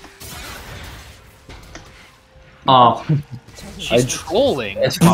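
Spell effects whoosh and crackle in a video game fight.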